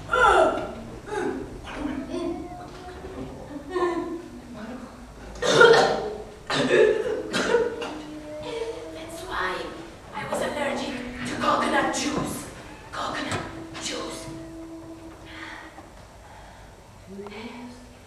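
A woman cries out and wails in distress.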